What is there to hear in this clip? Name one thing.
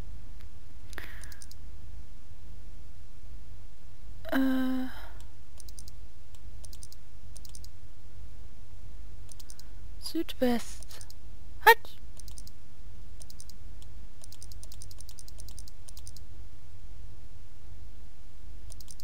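A safe's combination dial clicks as it turns.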